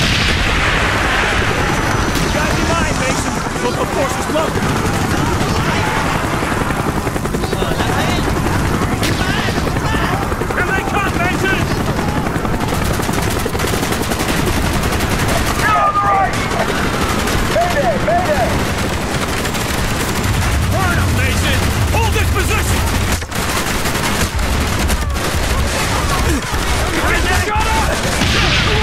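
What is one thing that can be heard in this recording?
Rifles fire in rapid bursts close by.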